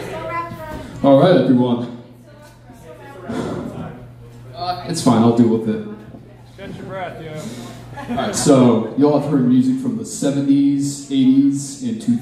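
A young man sings into a microphone over loudspeakers.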